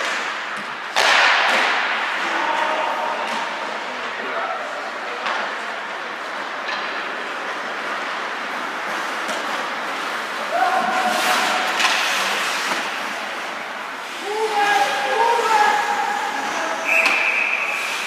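A puck clacks against sticks and boards.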